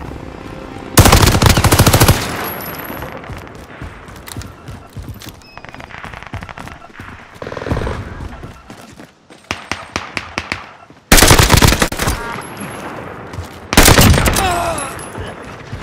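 Rapid gunfire rattles in loud, short bursts.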